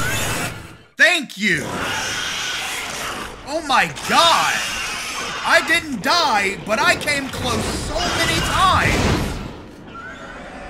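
A man shouts excitedly into a close microphone.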